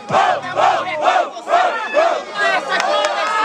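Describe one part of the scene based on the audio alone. A young man raps loudly and rhythmically, shouting close by.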